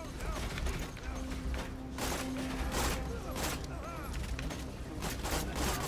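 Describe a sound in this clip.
A gun fires in loud bursts.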